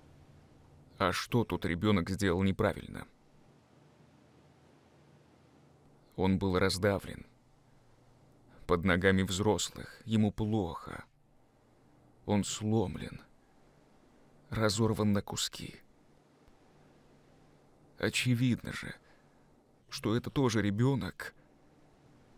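A man speaks quietly and emotionally, close by.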